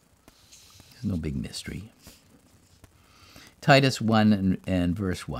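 An elderly man reads aloud calmly into a close microphone.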